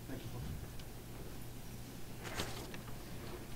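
Footsteps shuffle on a carpeted floor.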